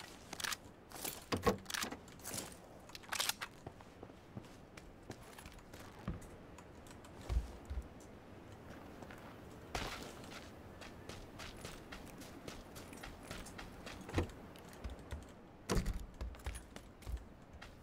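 Boots step across wooden floors.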